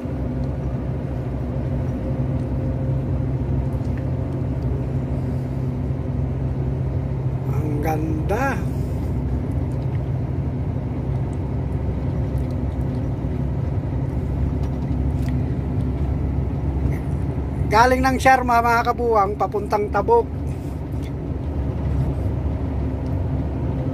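A heavy vehicle's engine drones steadily.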